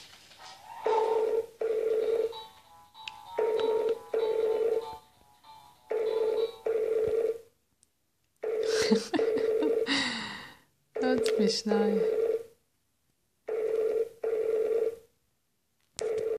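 A baby's toy plays a short electronic tune over and over, in bursts of paired notes.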